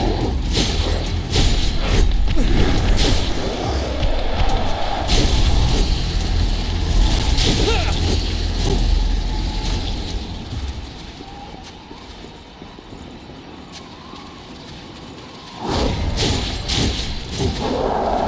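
Blades slash and strike with sharp, heavy impacts.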